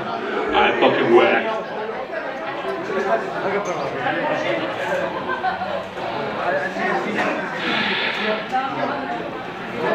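A man's voice sounds loudly through a microphone and loudspeakers.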